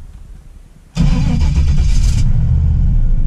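A car engine starts suddenly with a loud roar.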